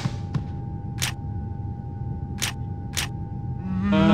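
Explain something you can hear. A game menu beeps several times.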